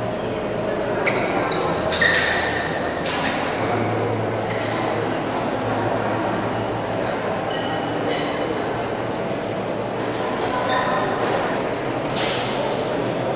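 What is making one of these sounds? A table tennis ball clicks sharply against paddles and the table.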